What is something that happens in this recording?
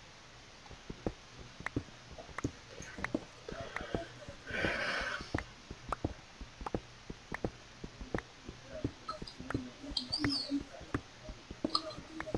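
A pickaxe chips and knocks at stone in quick, repeated taps.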